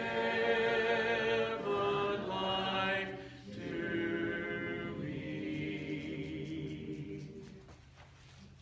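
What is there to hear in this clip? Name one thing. A man sings a slow hymn through a microphone in an echoing hall.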